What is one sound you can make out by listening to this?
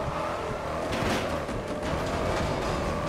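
A car crashes through a metal barrier with a loud bang.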